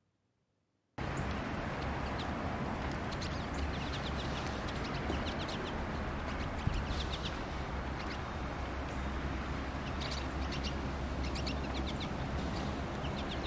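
Small birds chirp and twitter nearby.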